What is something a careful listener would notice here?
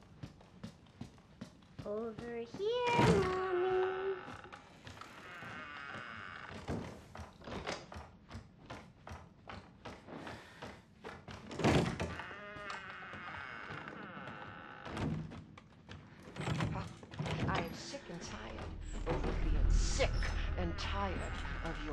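Footsteps thud steadily on creaky wooden floorboards.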